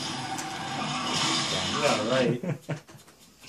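An explosion roars from a television speaker.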